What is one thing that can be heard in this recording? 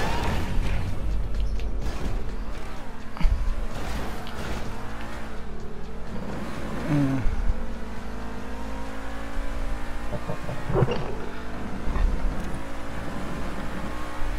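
A car engine roars and revs up steadily.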